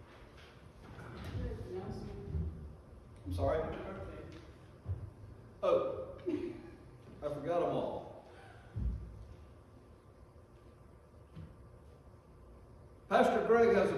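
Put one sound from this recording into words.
An elderly man speaks calmly through a microphone in a large, echoing room.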